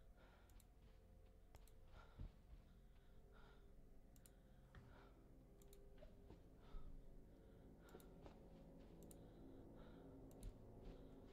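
Footsteps thud steadily on a soft floor.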